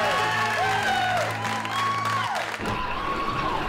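A crowd of men and women cheers and shouts loudly.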